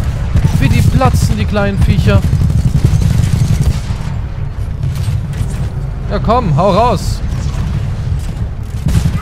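Heavy gunfire rattles rapidly and loudly.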